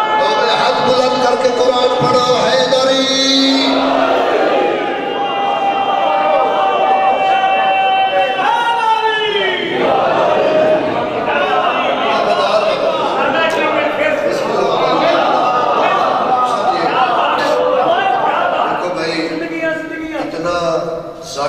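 A crowd of men chants loudly in a mournful melody.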